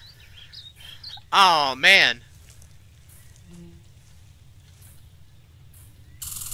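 Footsteps rustle through grass and dry leaves.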